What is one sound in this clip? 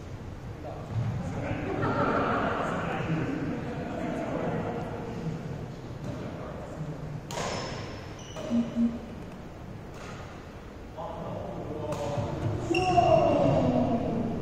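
Young men talk and call out in a large echoing hall.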